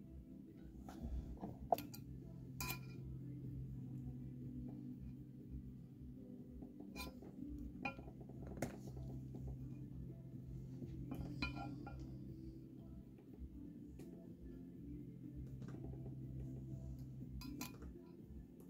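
A small probe taps and scrapes on a metal plate.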